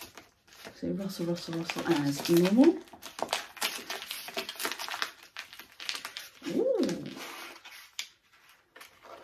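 Plastic wrapping crinkles in a woman's hands.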